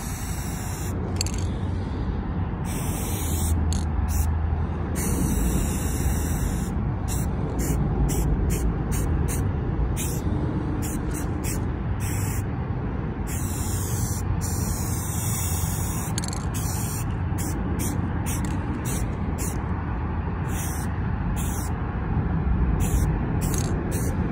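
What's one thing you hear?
A spray can hisses in short bursts.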